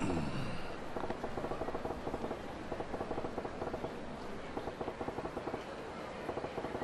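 Soft rapid ticks patter steadily.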